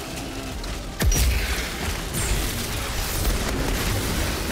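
Ice shatters with a loud crash.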